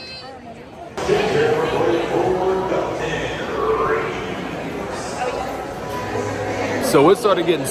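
A crowd chatters in an echoing hall.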